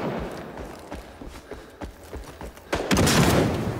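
Footsteps crunch over dirt and grass.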